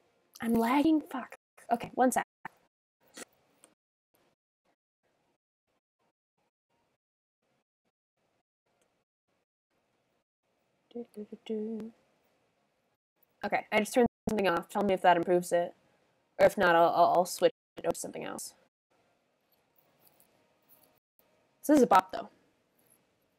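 A young woman talks casually into a nearby microphone, in short bursts with pauses.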